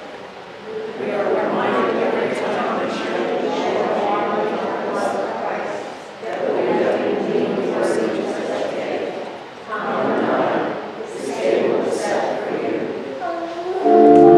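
An elderly man prays aloud in a steady voice in a reverberant hall.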